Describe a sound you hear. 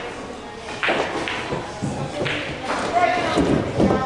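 Pool balls click against each other.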